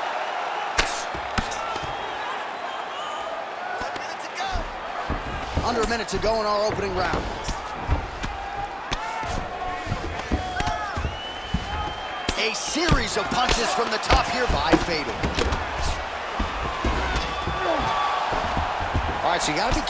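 Punches land with dull thuds on a body.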